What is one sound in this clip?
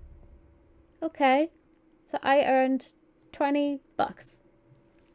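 A young woman speaks playfully and close into a microphone.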